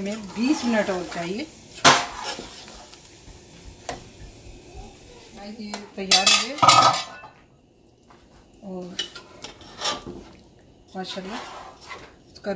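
A metal spoon stirs and scrapes inside a cooking pot.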